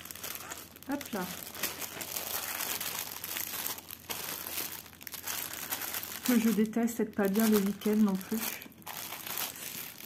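A plastic sleeve crinkles as it is handled.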